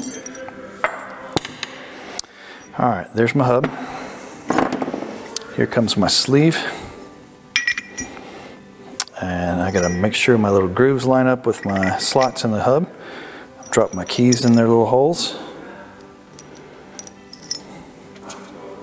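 Metal parts clink and click as they are handled.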